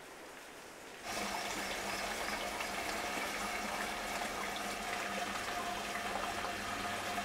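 Water bubbles and gurgles up through a pool.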